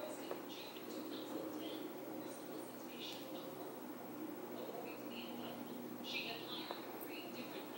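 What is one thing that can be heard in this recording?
A makeup brush brushes softly across skin.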